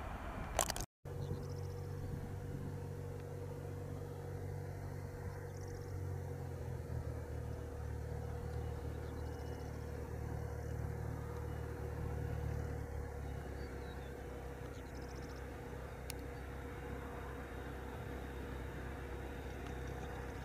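A distant jet plane's engines drone low and steady as it approaches.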